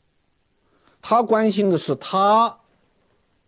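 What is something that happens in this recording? A middle-aged man speaks clearly and with emphasis into a microphone.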